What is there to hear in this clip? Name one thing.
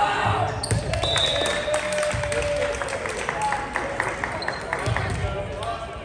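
A volleyball is struck and thuds in a large echoing hall.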